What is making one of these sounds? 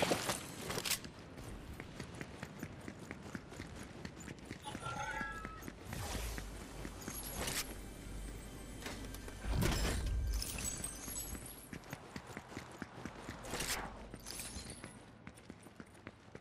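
Footsteps tap quickly on hard floors.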